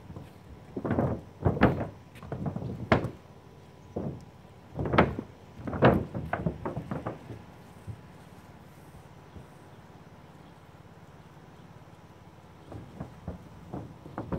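A paint roller rolls and swishes across a roof.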